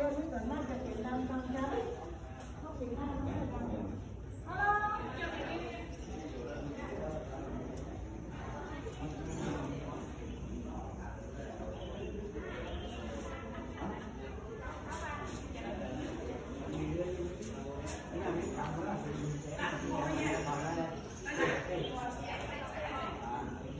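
A woman talks nearby in a calm voice.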